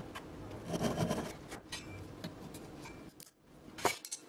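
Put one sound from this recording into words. A hand saw cuts through wood with rasping strokes.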